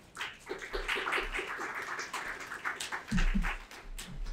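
A small group applauds briefly.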